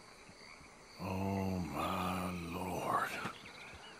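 A man speaks in a low, shaken voice close by.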